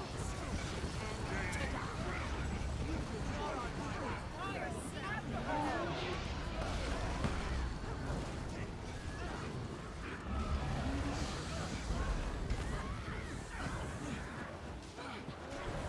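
Magical blasts and crackling spell effects clash in a busy fight.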